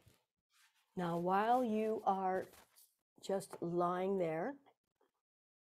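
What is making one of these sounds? An older woman speaks calmly and clearly, close by.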